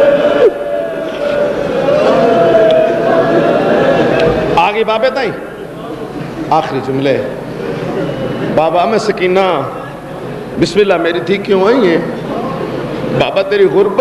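A man speaks forcefully through a microphone and loudspeakers in an echoing hall.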